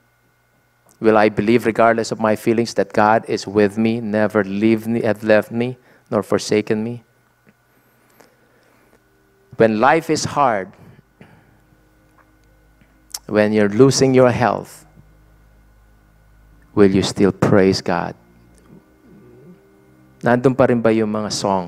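A man speaks calmly into a microphone, heard through loudspeakers, with pauses between phrases.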